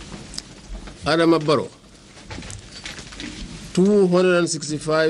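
A man speaks slowly and solemnly into microphones.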